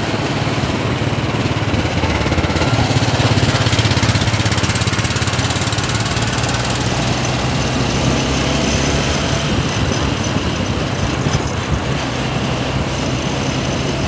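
Traffic rumbles along a busy road.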